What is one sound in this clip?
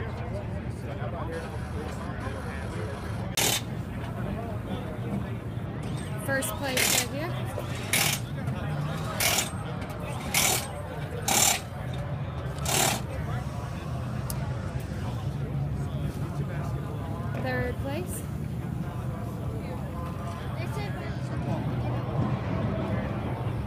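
Men chat among a crowd nearby outdoors.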